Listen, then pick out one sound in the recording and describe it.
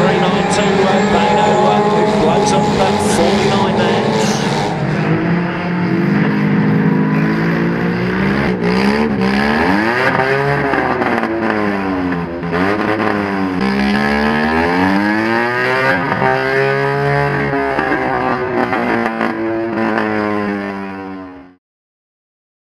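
Car engines roar and rev loudly.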